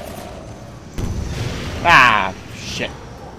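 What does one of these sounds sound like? A grenade explodes with a loud blast nearby.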